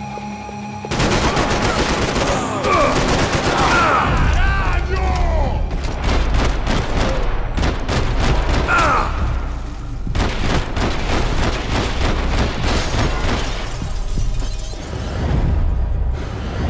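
Rapid gunfire cracks and echoes in a large hall.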